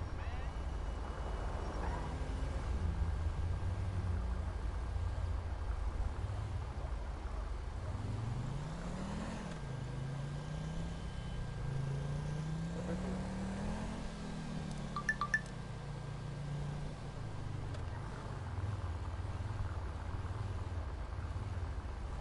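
A car engine revs up and down as it drives.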